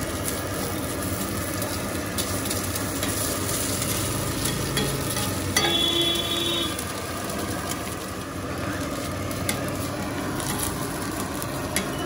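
A metal spatula scrapes and taps on a griddle.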